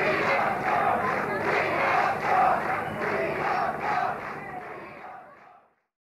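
A rock band plays loudly on stage.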